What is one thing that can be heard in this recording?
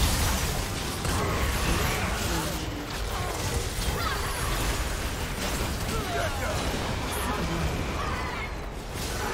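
Magic spells blast and crackle in a fast fight.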